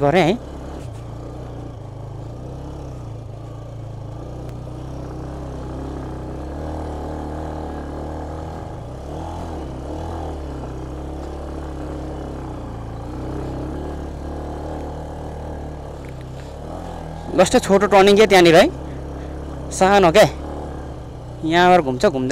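A motorcycle engine hums steadily at low speed.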